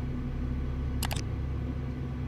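A mouse button clicks sharply.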